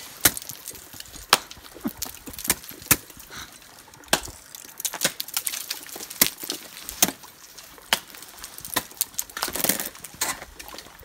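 An ice axe strikes hard ice with sharp, repeated thuds.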